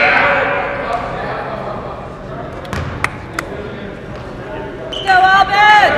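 Spectators murmur and chatter nearby.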